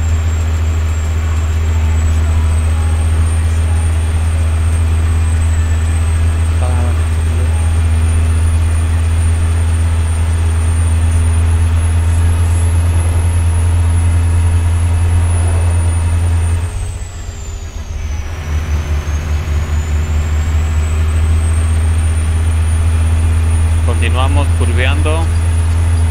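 A diesel semi truck engine drones while cruising.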